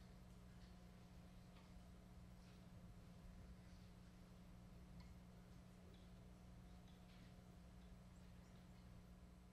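An upright bass plays low notes.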